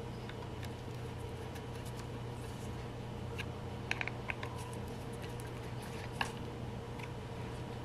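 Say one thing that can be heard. Fingers click and tap against small metal fittings.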